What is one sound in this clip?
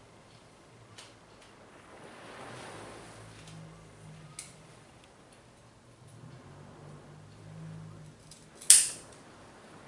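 Small pruning scissors snip through stems.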